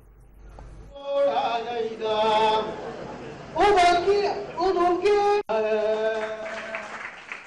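A man speaks loudly into a microphone, reading out over a loudspeaker.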